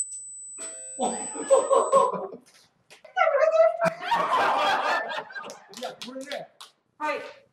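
A group of men and women laugh loudly together.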